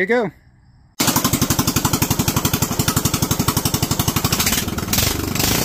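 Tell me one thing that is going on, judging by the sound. A small engine runs with a fast, steady chugging.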